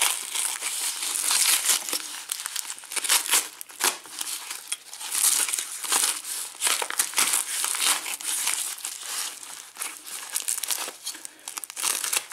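Plastic packaging crinkles and rustles in hands.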